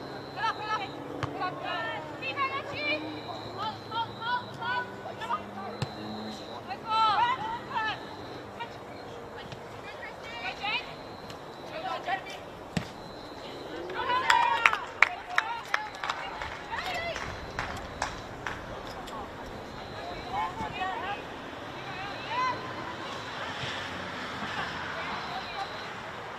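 Young women shout and call out across an open outdoor pitch.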